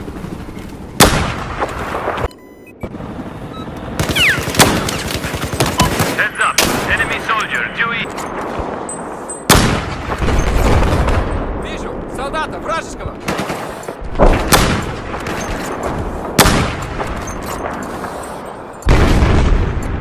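Rifle shots crack loudly, one at a time, with a booming echo.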